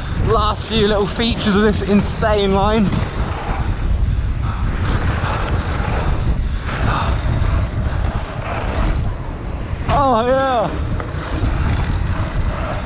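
Wind rushes loudly past as a bike speeds downhill.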